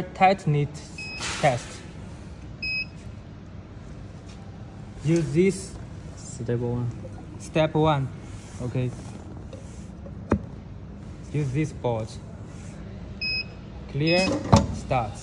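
A device gives short electronic beeps as buttons are pressed.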